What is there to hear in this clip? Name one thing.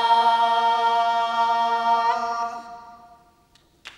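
A choir of elderly women sings together in a held, ringing chord that fades away.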